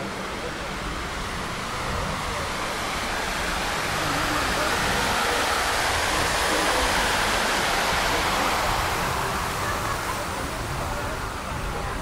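A fountain splashes loudly close by, then fades away.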